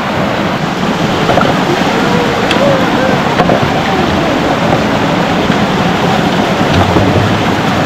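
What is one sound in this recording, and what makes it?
Plastic bottles knock and clatter together.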